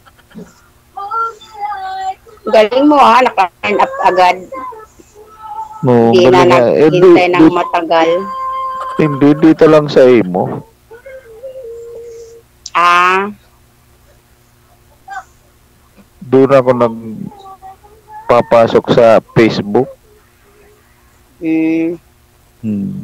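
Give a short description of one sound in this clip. A man sings into a microphone, heard over an online call.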